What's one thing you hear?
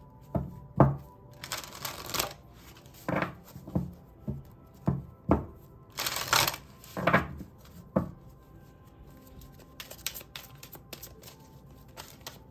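Cards shuffle and riffle softly in someone's hands close by.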